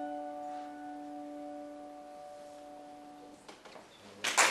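A piano plays a last chord that rings and fades.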